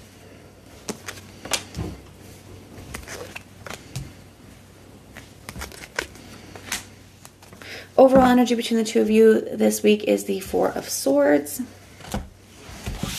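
Cards tap and slap softly on a table.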